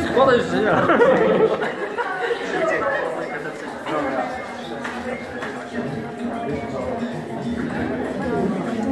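Several men and women talk at once close by, in a lively, overlapping chatter.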